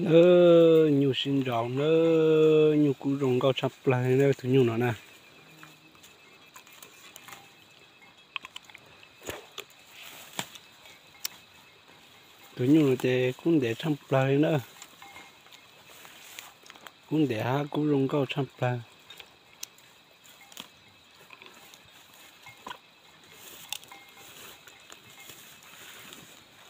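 A cow tears and chews leafy plants close by.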